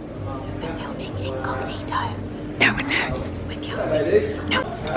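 A young woman talks cheerfully close to the microphone.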